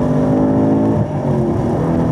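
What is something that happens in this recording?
A car engine drops sharply in pitch as the gear shifts up.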